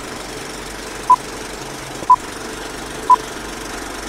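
Short high beeps sound once a second.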